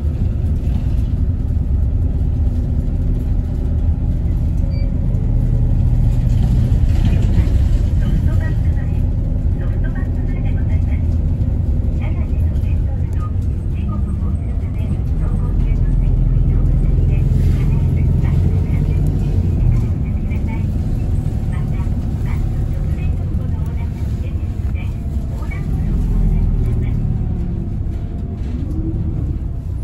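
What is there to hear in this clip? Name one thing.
A car engine hums low and steadily, heard from inside the car.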